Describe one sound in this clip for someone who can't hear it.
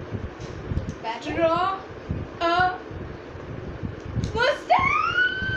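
A young girl squeals in a high voice.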